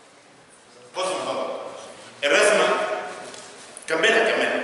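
A middle-aged man speaks with animation through a clip-on microphone.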